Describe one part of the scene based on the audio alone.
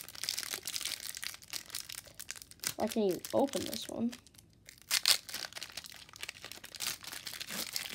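A foil wrapper crinkles and rustles as fingers tear it open.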